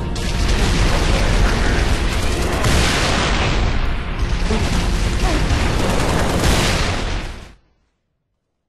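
Energy weapons fire and crackle in a loud game battle.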